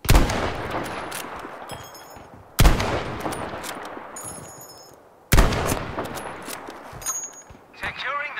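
A rifle bolt clicks as it is worked.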